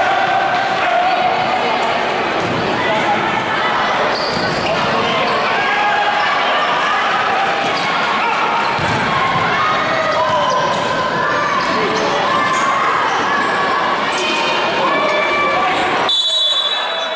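A crowd cheers and shouts in an echoing sports hall.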